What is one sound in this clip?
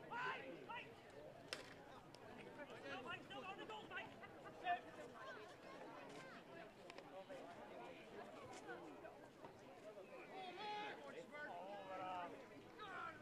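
A crowd of spectators chatters and shouts outdoors at a distance.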